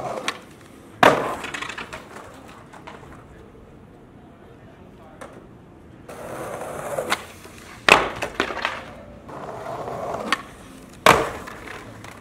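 A skateboard slams down hard onto pavement with a loud clack.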